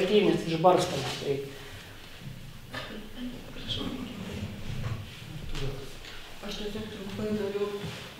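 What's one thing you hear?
A young man speaks calmly into a microphone in a large echoing room.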